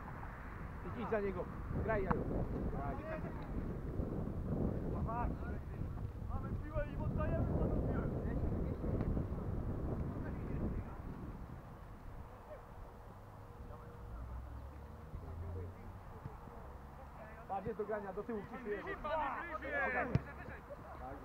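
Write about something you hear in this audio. Young men shout to each other across an open field, at a distance.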